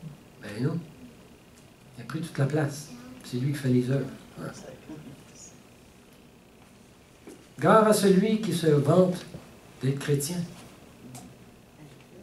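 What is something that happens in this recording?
An older man speaks calmly through a headset microphone, with pauses.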